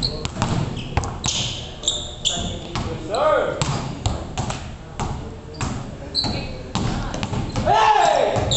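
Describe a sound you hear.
Basketballs bounce hard and fast on a floor in an echoing hall.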